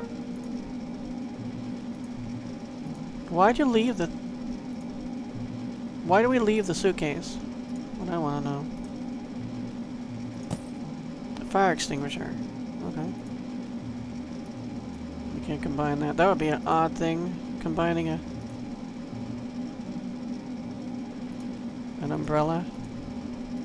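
A low steady hum drones throughout.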